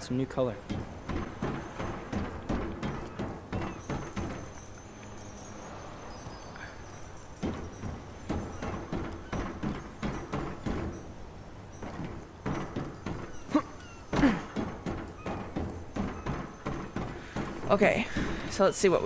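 Footsteps patter quickly across a tiled roof.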